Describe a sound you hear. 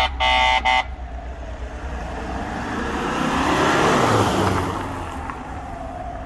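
A van drives past close by, its engine and tyres swelling and fading.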